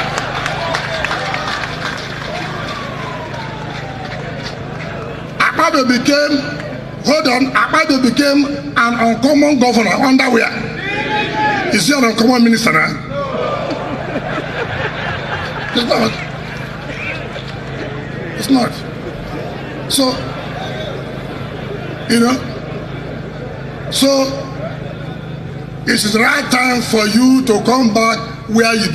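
A man speaks forcefully into a microphone over loudspeakers, with an echo.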